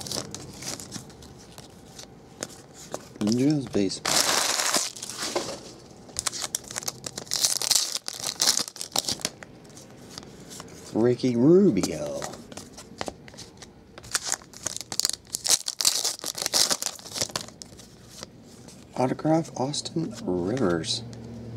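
Trading cards flick and slide against each other as they are shuffled.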